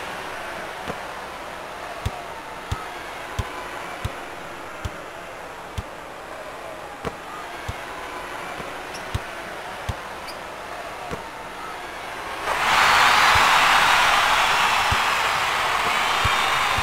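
A basketball bounces steadily.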